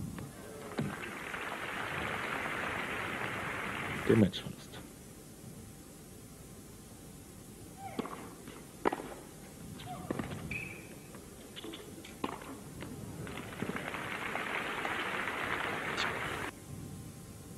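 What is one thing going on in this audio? A crowd applauds in a large arena.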